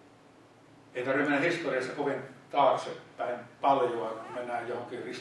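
An older man speaks calmly into a microphone, heard through a loudspeaker.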